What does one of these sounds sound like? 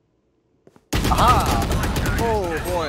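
Gunshots ring out in a rapid burst.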